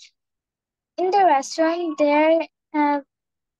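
A woman speaks clearly through an online call, in short phrases.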